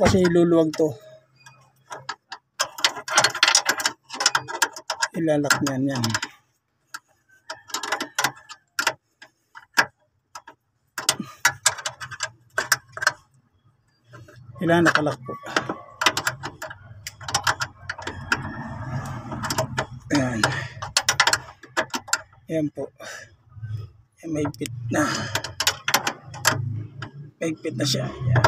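A metal wrench clinks and scrapes against a bolt.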